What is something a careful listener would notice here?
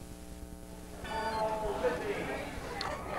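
A crowd chatters and calls out in outdoor stands.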